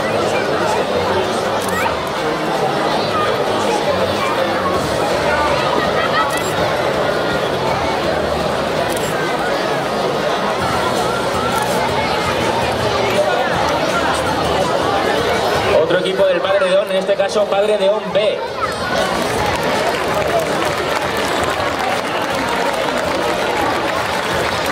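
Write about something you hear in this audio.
A crowd of children and adults chatters and calls out nearby.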